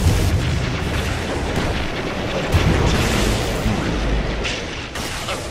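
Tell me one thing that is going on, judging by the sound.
Magical spell effects crackle and boom loudly.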